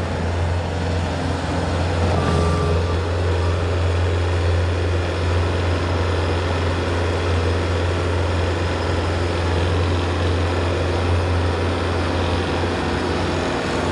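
A skid steer loader's diesel engine rumbles loudly and steadily close by.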